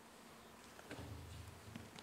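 A man speaks briefly into a microphone in a large hall.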